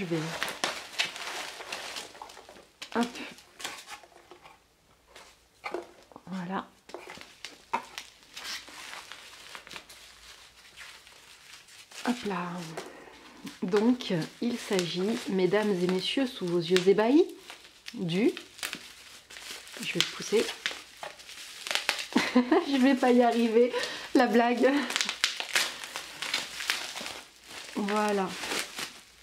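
Bubble wrap crinkles and rustles.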